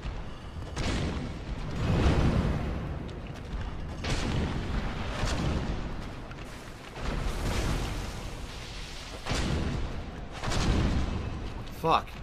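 Heavy blows and swishes of a fight thud and rumble.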